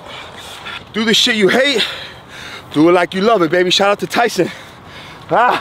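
A man speaks loudly and with animation, close by, outdoors.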